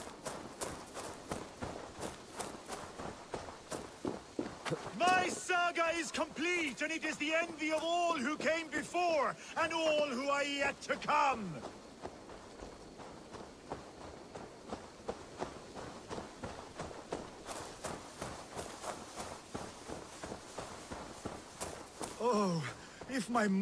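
Footsteps crunch through undergrowth at a steady walking pace.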